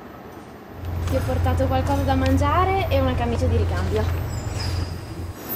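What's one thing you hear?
A man and a woman talk cheerfully nearby.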